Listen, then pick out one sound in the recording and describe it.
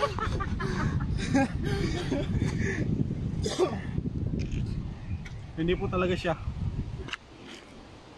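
Two young men laugh loudly nearby.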